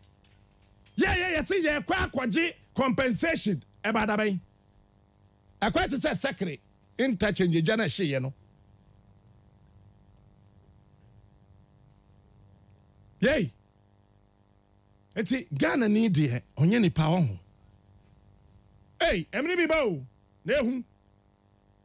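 A man speaks with animation, close to a microphone, in bursts with long pauses.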